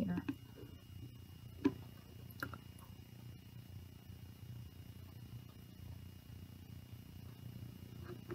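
Oil pours slowly into a plastic bottle.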